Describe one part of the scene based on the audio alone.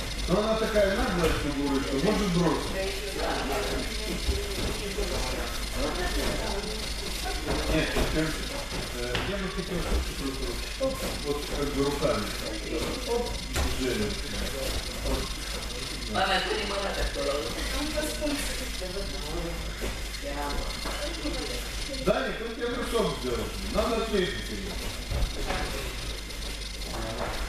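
Bare feet shuffle and thump on a mat.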